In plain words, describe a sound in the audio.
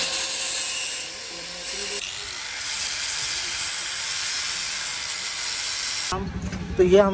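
An angle grinder whines loudly as it cuts metal.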